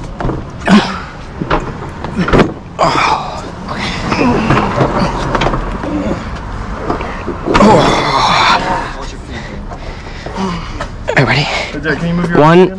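A man talks with effort close by.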